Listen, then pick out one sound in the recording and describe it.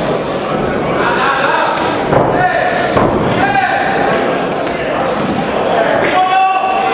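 A crowd of spectators shouts and cheers loudly in an echoing hall.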